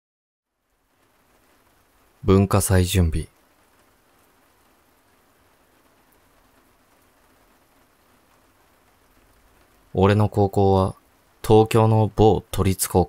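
A stream of water flows and laps gently over stones.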